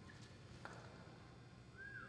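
A horse skids to a sliding stop in the dirt.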